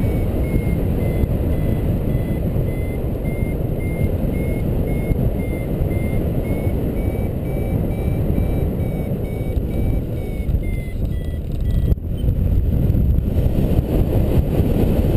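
Wind roars steadily past a paraglider in flight.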